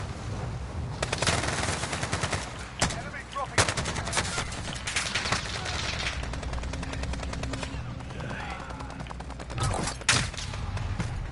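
Rapid gunfire cracks in bursts.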